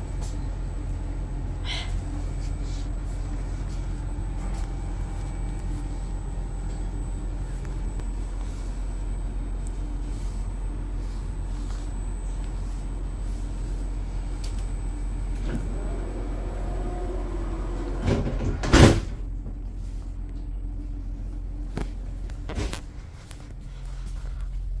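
A train's motors hum steadily.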